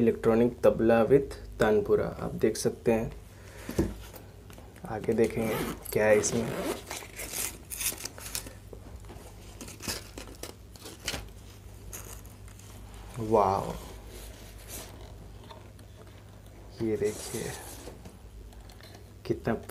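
A fabric bag rustles and scrapes as it is handled.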